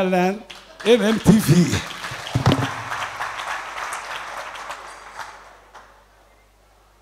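A crowd claps their hands.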